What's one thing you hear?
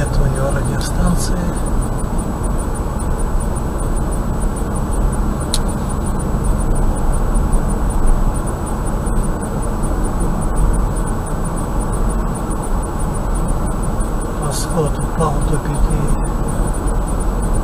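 A car engine hums steadily as tyres roll along a road.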